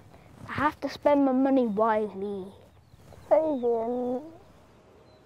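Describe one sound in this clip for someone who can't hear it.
A young woman talks softly close by.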